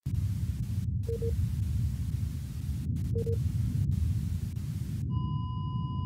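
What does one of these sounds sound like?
A television hisses with loud static.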